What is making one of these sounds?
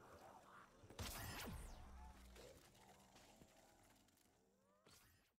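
Zombies snarl and groan.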